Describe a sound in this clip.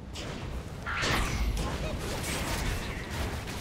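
Flames burst and crackle.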